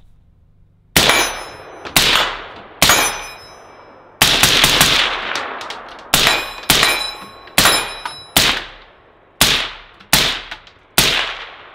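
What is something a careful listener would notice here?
A suppressed rifle fires sharp, muffled shots in quick succession outdoors.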